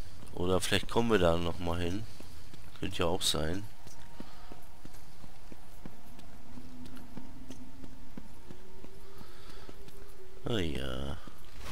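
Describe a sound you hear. Footsteps run across a stone floor.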